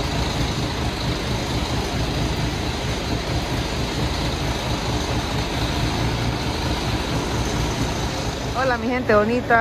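A bus engine idles with a low rumble.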